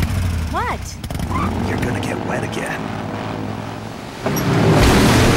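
A motorcycle engine roars and revs.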